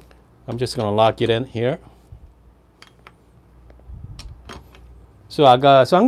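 A metal portafilter scrapes and clicks into place on an espresso machine.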